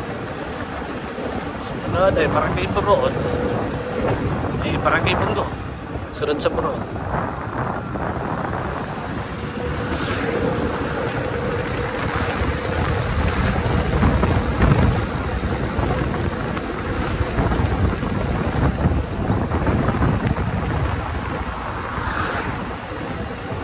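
Wind rumbles against the rider.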